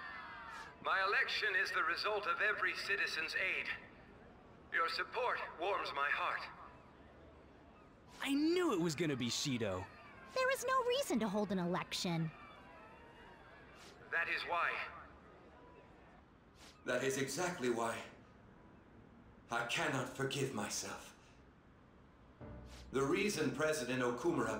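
A middle-aged man speaks with emotion through a microphone.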